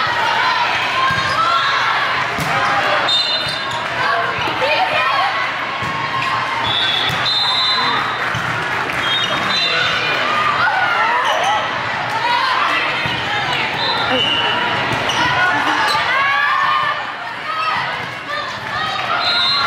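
Young women call out and cheer in a large echoing hall.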